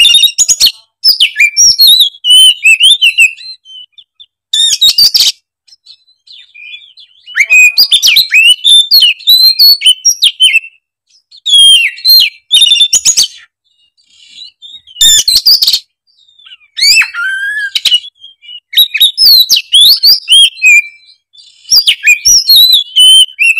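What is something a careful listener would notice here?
A songbird sings loud, varied, chattering phrases in bursts.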